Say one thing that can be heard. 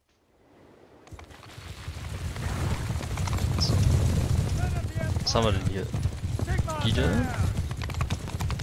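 Many horses gallop in a charge, hooves thundering.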